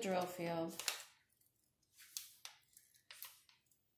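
Paper rustles as it is folded.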